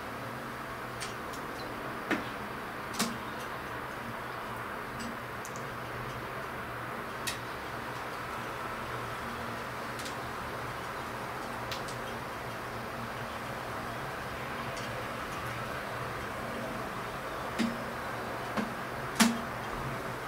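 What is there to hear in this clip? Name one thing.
A pigeon pecks grain from a glass jar with sharp taps.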